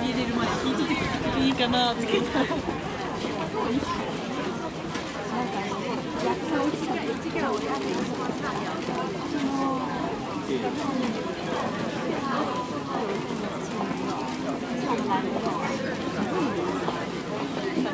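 A crowd of men and women chatter nearby, outdoors.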